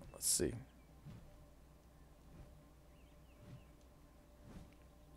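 Large wings flap with soft, regular whooshes.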